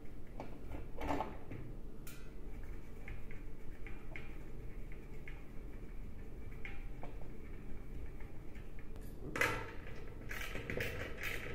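A plastic dish knocks and scrapes as it is handled.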